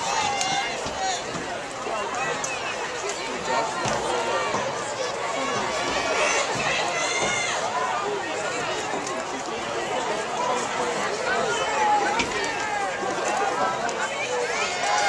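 A crowd of spectators cheers and shouts outdoors.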